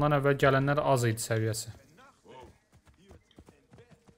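A horse's hooves clop on a dirt path.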